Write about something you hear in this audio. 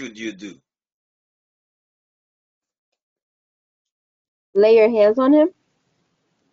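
A man speaks through an online call, in short bursts.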